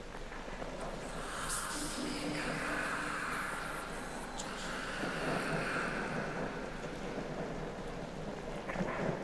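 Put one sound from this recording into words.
Water laps softly in an echoing pool.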